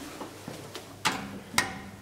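A finger clicks a button.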